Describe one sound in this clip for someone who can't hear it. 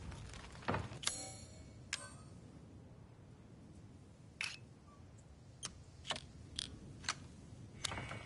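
Menu clicks and blips sound in short bursts.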